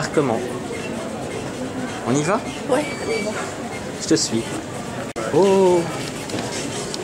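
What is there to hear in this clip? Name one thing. An elderly woman speaks nearby.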